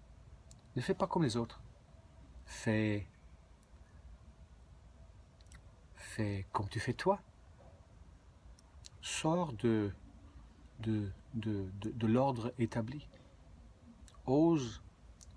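A middle-aged man speaks calmly and close by, in short bursts with pauses.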